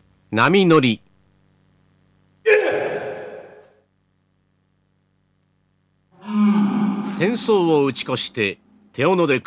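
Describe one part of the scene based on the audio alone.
A man's voice rings out in an echoing hall.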